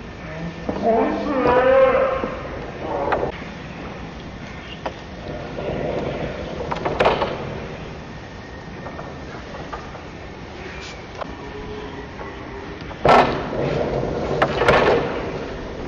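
Knuckles knock on a wooden gate.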